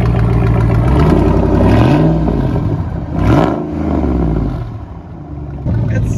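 A truck engine revs up and down several times.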